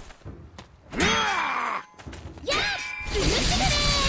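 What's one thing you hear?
Swords clash with sharp metallic ringing strikes.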